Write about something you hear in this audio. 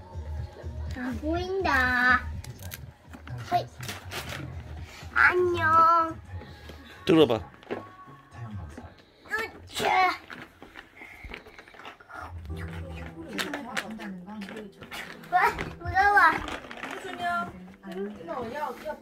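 A young child chatters and squeals up close.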